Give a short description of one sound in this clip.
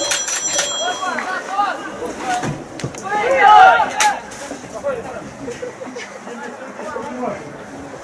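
Young men shout to each other across an open pitch, heard from a distance.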